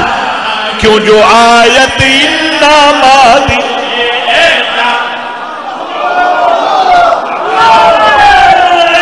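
A man sings a mournful chant loudly through a microphone.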